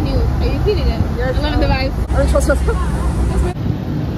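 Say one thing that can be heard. A young woman laughs up close.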